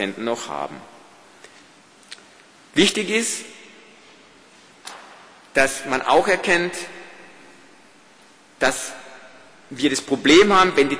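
A man speaks calmly in short phrases through a microphone, echoing in a large hall.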